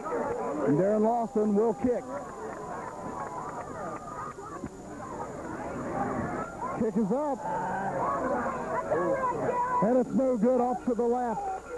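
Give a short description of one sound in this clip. Men close by shout excitedly.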